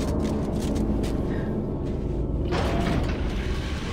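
A heavy metal door slides open with a mechanical hiss.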